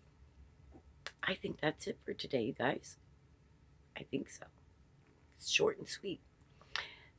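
An older woman talks calmly, close to the microphone, with pauses.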